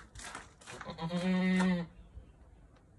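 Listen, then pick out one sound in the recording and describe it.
A goat bleats loudly nearby.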